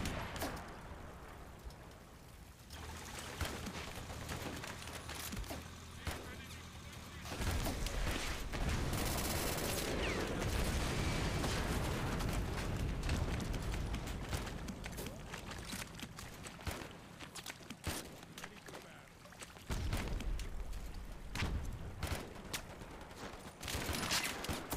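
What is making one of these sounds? Explosions boom and rumble again and again.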